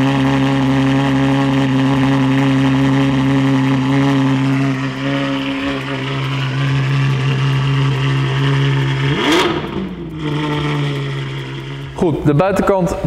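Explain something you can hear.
A car engine idles with a deep, steady rumble.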